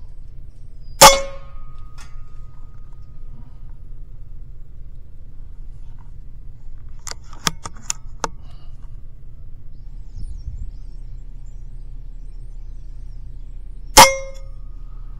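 An air rifle fires with a sharp, short crack.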